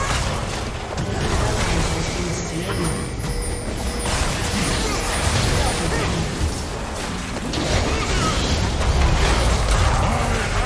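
Game spells blast and crackle in quick bursts.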